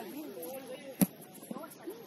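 A ball is kicked with a sharp thud.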